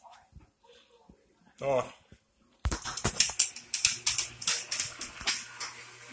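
A dog's claws click on a hard floor.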